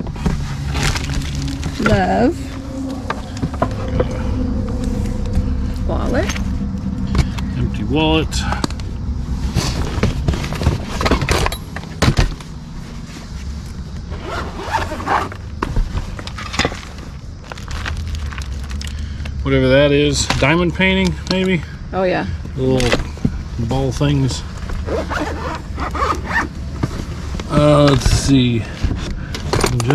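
Items rustle and clatter as they are handled in a cardboard box.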